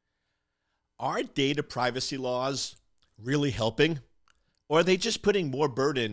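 A middle-aged man speaks calmly and close into a microphone.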